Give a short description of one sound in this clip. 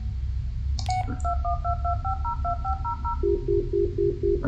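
A mobile phone plays a short rising tone as a call is dialed.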